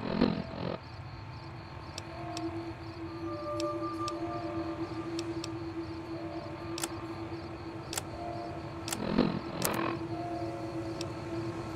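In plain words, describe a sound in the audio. Short electronic clicks tick as a menu is scrolled.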